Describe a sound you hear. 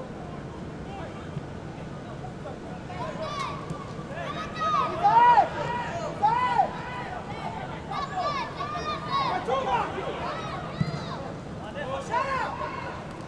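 A crowd murmurs in the stands outdoors.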